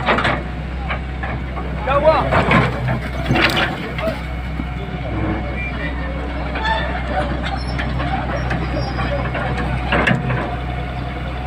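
Concrete rubble crashes and scrapes as an excavator bucket breaks a wall.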